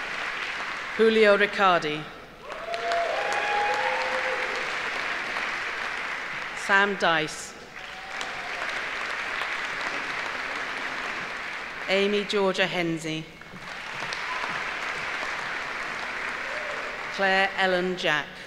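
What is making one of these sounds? A middle-aged woman reads out clearly over a microphone in a large hall.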